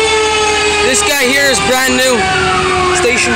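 Fire truck horns blast in short bursts.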